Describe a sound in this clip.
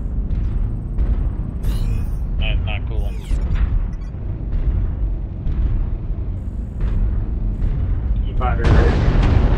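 A heavy machine's engine rumbles low and steady.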